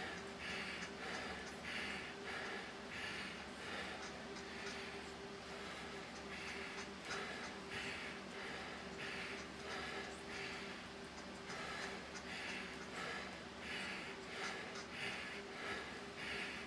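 A man breathes hard and heavily in a steady rhythm, close by.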